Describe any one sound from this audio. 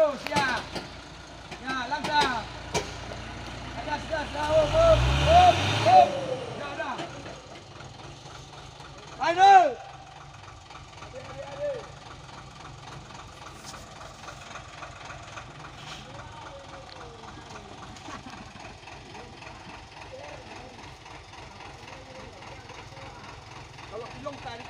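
A truck engine rumbles and revs hard.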